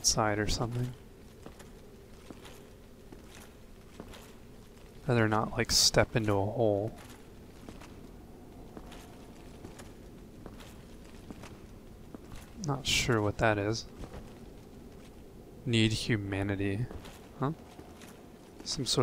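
Armoured footsteps clank steadily on a stone floor.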